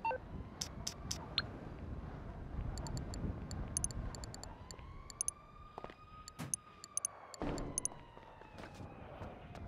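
Short electronic clicks tick as menu items are selected.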